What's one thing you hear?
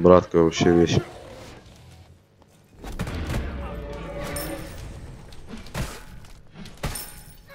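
Magic blasts whoosh and crackle in a fight.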